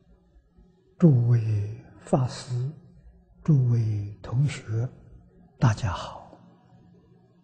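An elderly man speaks calmly and slowly into a nearby microphone.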